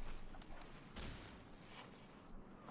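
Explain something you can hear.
An electric blast bursts with a crackling snap.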